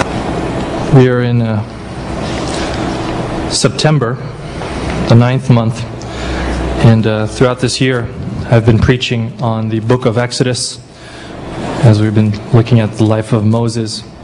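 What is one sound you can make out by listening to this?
A man speaks calmly into a microphone, heard through loudspeakers in an echoing hall.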